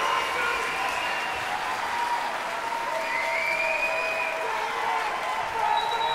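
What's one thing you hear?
A large orchestra plays sustained music in a big, echoing concert hall.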